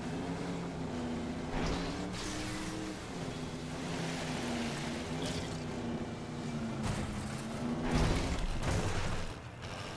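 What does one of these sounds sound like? Water splashes and sprays against a boat's hull.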